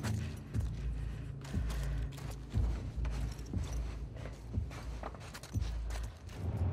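Heavy footsteps thud slowly on wooden stairs.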